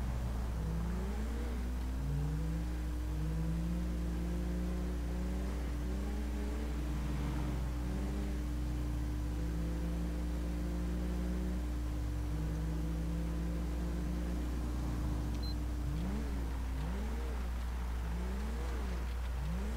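A police car engine hums as it drives steadily.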